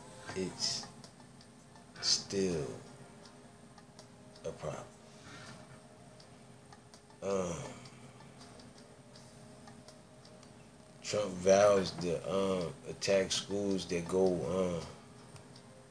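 A man speaks close up in short bursts, with pauses, then talks more steadily.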